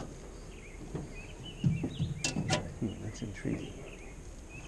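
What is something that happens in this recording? Footsteps and shuffling thud on a hollow metal boat floor.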